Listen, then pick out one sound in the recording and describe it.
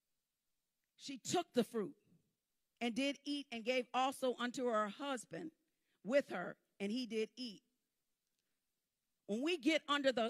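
A woman speaks calmly into a microphone, pausing between phrases.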